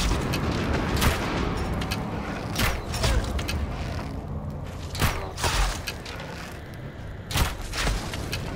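A bowstring snaps as arrows are loosed, one after another.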